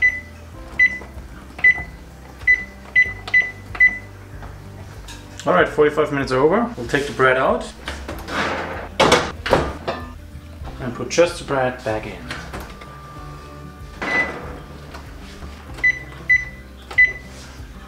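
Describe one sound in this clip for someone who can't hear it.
An oven control panel beeps with short, high electronic tones as its buttons are pressed.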